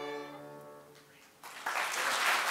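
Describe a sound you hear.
An orchestra holds a final chord in a large hall.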